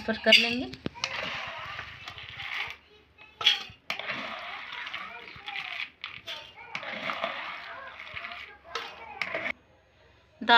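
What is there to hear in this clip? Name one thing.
Wet beans rustle and patter as a spoon scoops them from a bowl of water.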